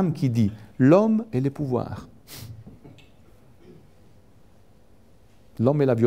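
A middle-aged man speaks with animation into a handheld microphone, with pauses.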